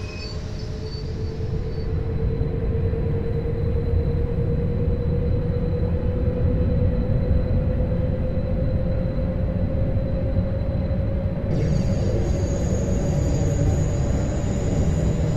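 Train wheels rumble steadily over the rails.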